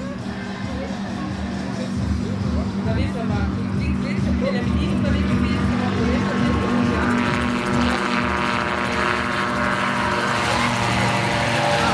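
Rotor blades whir and thump rhythmically overhead.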